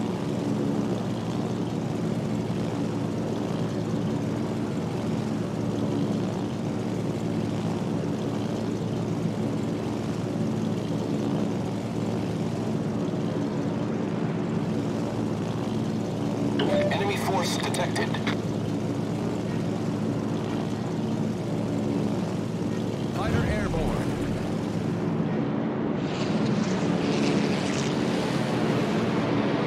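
A formation of piston-engine aircraft drones in flight.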